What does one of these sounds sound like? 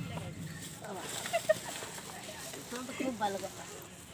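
A plastic bag rustles in a woman's hands.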